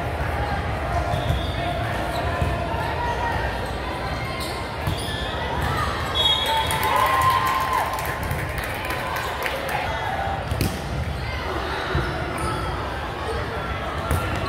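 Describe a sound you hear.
Volleyballs thump against hands and the floor in a large echoing gym.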